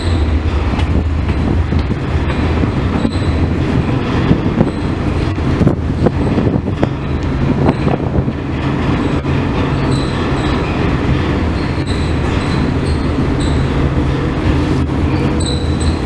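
Wind blows across an open deck.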